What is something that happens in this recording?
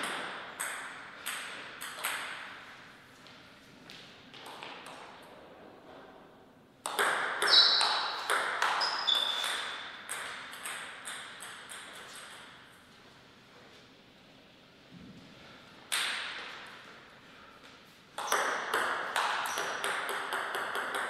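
A table tennis ball clicks off paddles and the table in a rally.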